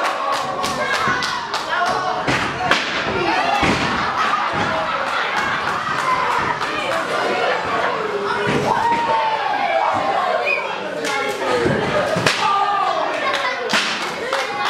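Bodies thud onto a wrestling ring mat.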